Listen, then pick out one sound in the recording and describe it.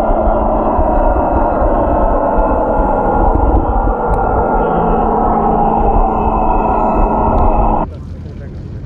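Water rushes and rumbles loudly underwater.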